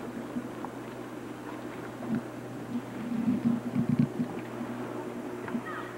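A swimmer splashes through the water.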